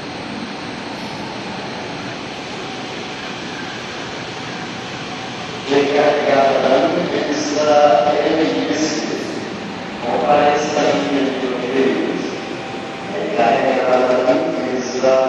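A train rolls slowly past close by.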